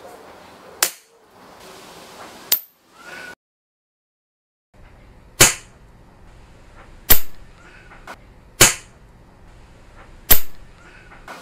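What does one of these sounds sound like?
An air rifle fires sharp, snapping shots.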